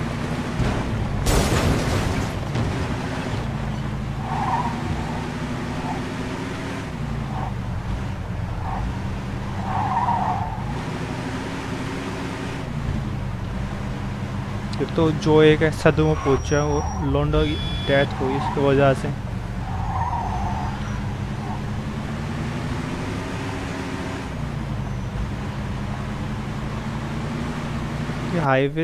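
A car engine hums steadily, rising and falling in pitch as the car speeds up and slows down.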